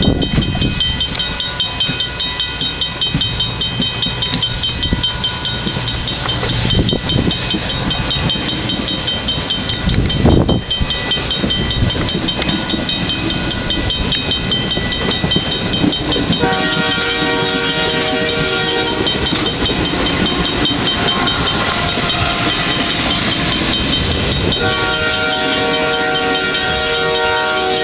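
A passenger train rumbles past close by.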